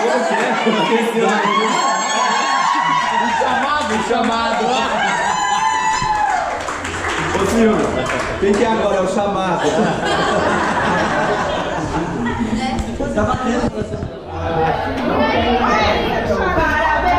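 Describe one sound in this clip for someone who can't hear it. Pop music with singing plays loudly through loudspeakers in a room that echoes.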